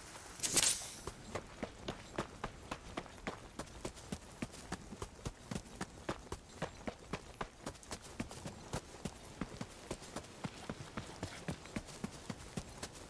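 Footsteps crunch quickly and steadily over ground.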